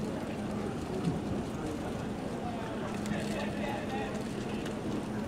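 A marching band plays brass and drums outdoors.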